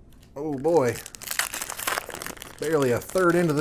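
A foil card pack crinkles and tears open close by.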